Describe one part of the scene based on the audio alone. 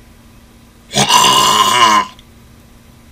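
A young man shouts loudly, close to a microphone.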